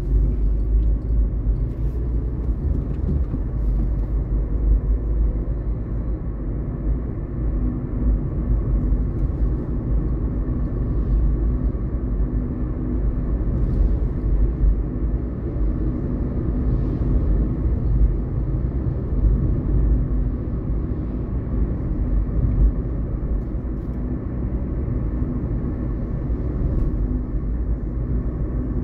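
A car's engine hums, heard from inside the car.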